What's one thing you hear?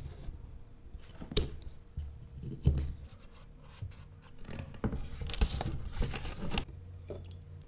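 A knife scrapes and cuts into wood.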